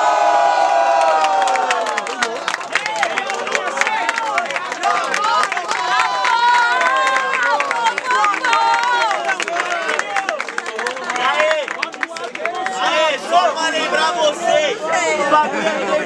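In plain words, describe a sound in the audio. A crowd claps hands.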